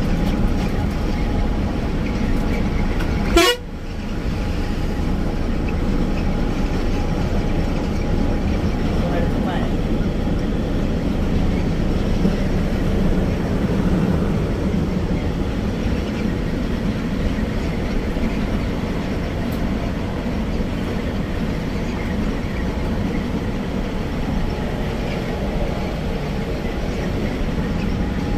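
Wind rushes past an open window.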